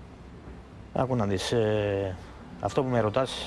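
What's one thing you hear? A middle-aged man speaks with emotion into a microphone.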